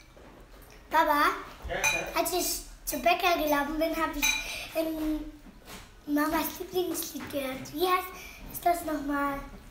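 A small boy talks close by.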